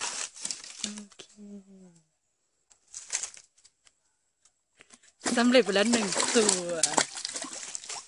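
A fish splashes in a bucket of water.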